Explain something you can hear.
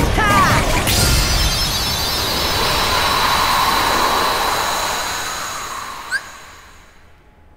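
Magical blasts and clashes burst loudly during a fight.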